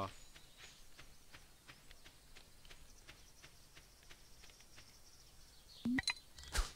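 Footsteps patter quickly on soft dirt.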